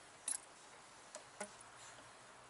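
A metal tool clinks against engine parts.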